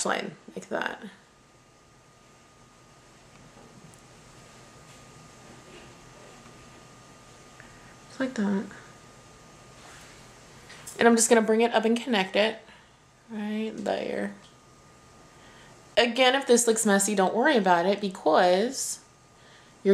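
A woman speaks calmly and closely.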